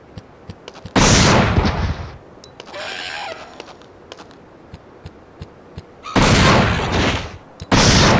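Gunshots boom loudly in bursts.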